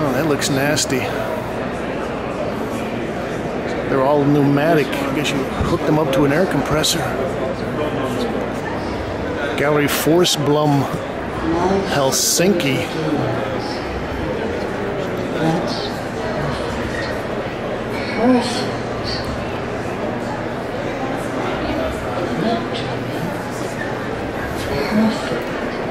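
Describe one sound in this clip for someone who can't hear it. Men and women chatter around the listener in a large, echoing room.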